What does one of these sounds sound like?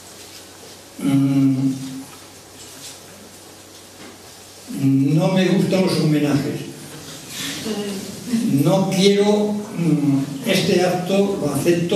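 An elderly man speaks slowly into a microphone, in pauses.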